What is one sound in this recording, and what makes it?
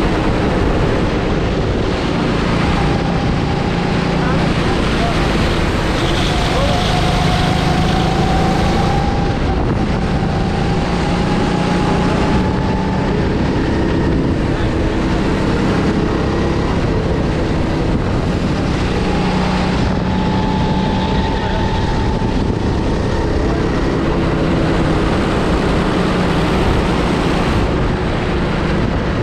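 A go-kart engine buzzes loudly up close, its pitch rising and falling with the throttle.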